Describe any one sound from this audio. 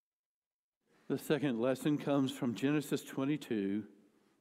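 A middle-aged man speaks calmly through a microphone in a large echoing hall.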